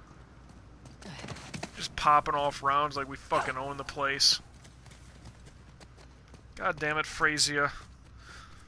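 A man talks with animation into a nearby microphone.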